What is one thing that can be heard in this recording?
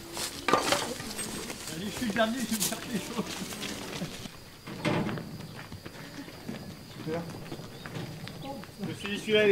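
A man talks casually nearby outdoors.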